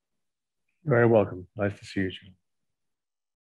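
A man speaks briefly through an online call.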